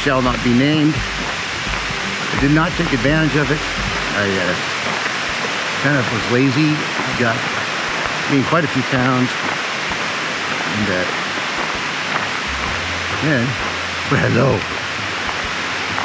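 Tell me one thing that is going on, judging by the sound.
A middle-aged man talks calmly and close by, outdoors.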